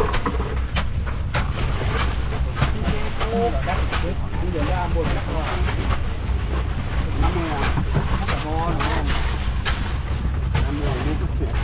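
Bags of frozen fish thud onto a hold floor.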